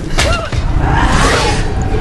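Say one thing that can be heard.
Metal strikes metal with a sharp ring.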